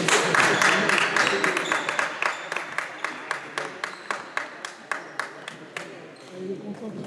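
People clap in rhythm in a large echoing hall.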